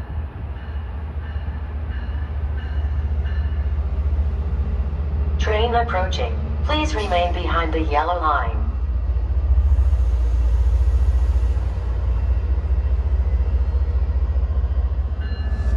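A train rumbles closer, growing steadily louder.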